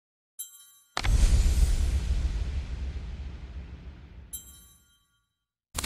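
A card upgrade whooshes with a rumbling impact that fades away.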